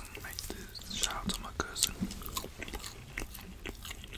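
A man chews and smacks his lips loudly close to a microphone.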